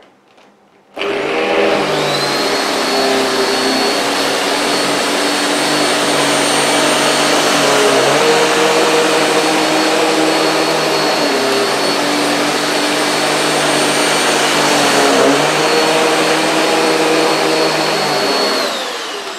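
A vacuum cleaner whines loudly as it runs over a carpet, its motor pitch shifting as it is pushed back and forth.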